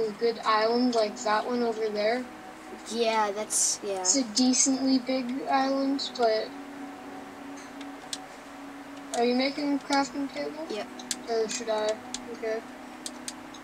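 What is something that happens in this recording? A boy talks with animation into a close microphone.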